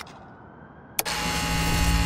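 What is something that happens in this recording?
A switch clicks sharply.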